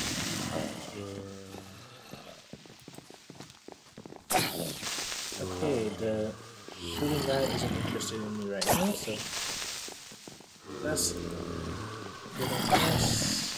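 Zombies groan in low, drawn-out moans.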